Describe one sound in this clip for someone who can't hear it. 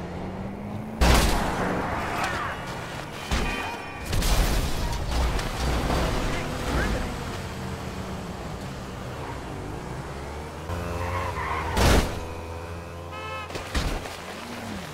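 A body slams hard onto pavement with heavy thuds.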